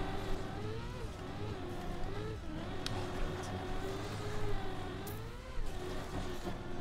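A racing car's engine whines steadily, its pitch rising and falling slightly.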